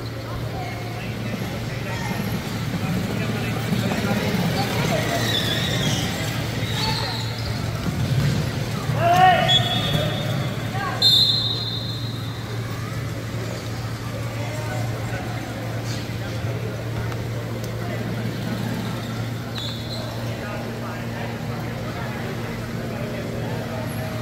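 Electric wheelchair motors whir steadily across an echoing hall.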